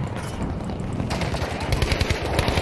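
Gunshots crack in quick bursts close by.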